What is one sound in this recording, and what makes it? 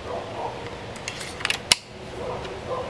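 A rifle's bolt clacks sharply as it is worked.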